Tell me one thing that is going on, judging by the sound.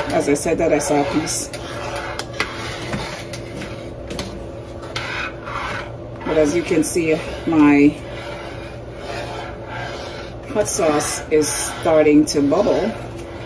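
A spoon stirs thick soup in a metal pot, scraping and squelching.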